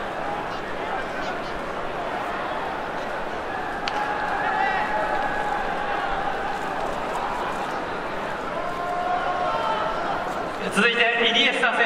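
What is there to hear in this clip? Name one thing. A stadium crowd murmurs and cheers in the open air.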